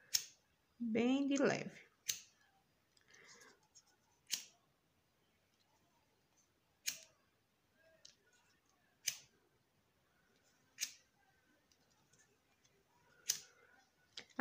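A lighter clicks repeatedly as it is sparked.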